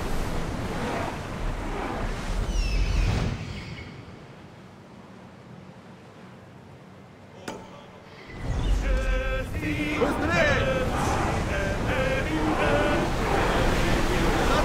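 Waves splash and rush against a ship's hull.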